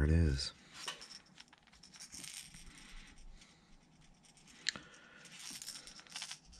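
A marker pen scratches softly on a small plastic object.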